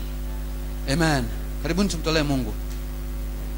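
A man speaks with animation into a microphone, heard through a loudspeaker.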